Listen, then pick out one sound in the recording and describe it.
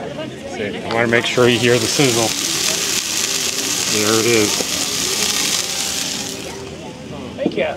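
Meat sizzles loudly on a hot griddle.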